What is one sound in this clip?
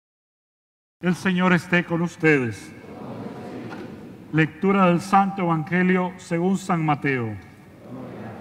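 A middle-aged man speaks calmly into a microphone in a reverberant hall.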